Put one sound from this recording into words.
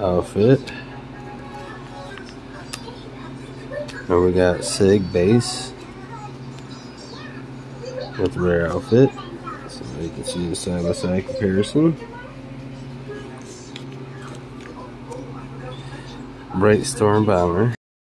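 Trading cards rustle and slide as a hand handles them.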